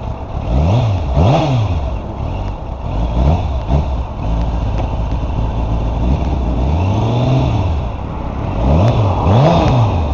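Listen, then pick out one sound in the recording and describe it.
A motorcycle engine revs up and down again and again.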